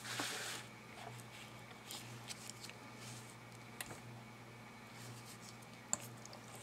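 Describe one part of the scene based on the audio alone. Paper cards rustle and slide against each other.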